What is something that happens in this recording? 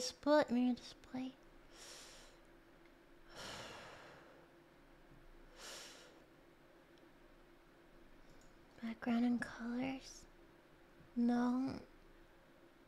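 A young woman speaks with animation into a close microphone, in short bursts.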